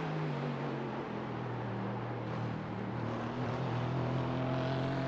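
A racing car engine hums at a steady low pace.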